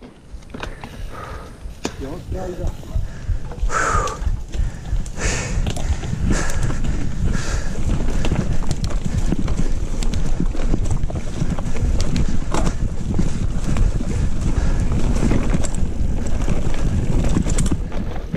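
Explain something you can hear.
A bicycle frame and chain clatter over bumps.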